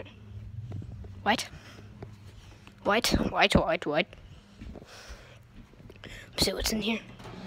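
A phone microphone rustles and bumps as it is handled.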